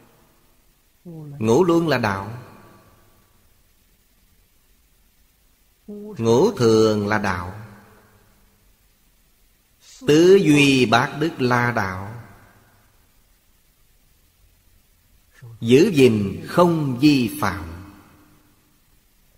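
An elderly man speaks calmly, close to the microphone, in short phrases with long pauses.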